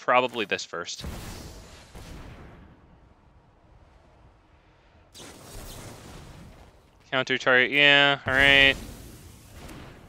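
A magical whooshing effect swells and fades.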